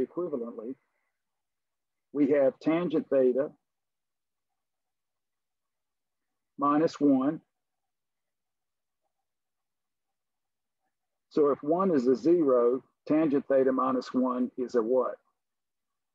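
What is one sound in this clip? An elderly man explains calmly, heard through an online call.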